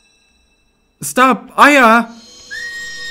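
A young man yells loudly into a microphone.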